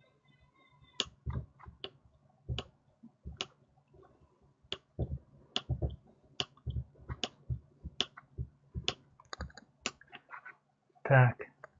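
A screwdriver clicks and taps against small plastic parts.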